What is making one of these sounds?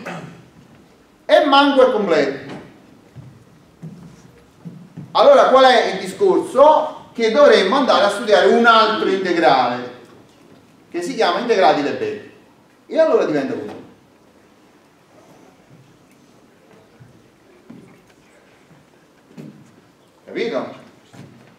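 A middle-aged man speaks in bursts with pauses, in a room with some echo.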